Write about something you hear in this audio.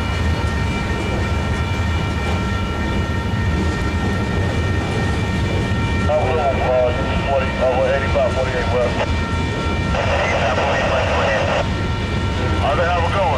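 A freight train rumbles past at close range.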